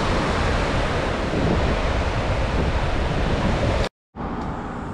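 Surf washes and breaks steadily on a beach.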